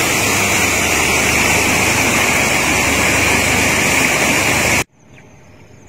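A stream rushes loudly over rocks.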